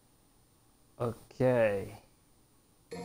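A young man speaks briefly and close to a microphone.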